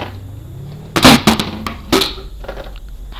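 A car crashes with a loud bang and crunch.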